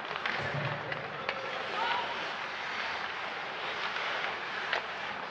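Hockey sticks click against the puck and the ice.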